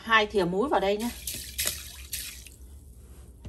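Water pours and splashes into a plastic bowl.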